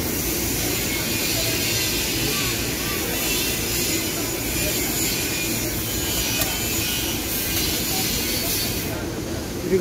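A metal spoon clinks against a steel container.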